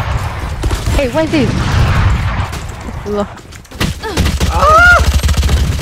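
A sniper rifle fires with a loud crack.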